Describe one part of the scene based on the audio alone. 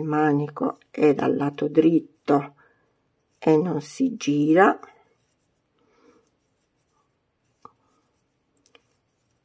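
A crochet hook softly rustles as it pulls yarn through loops.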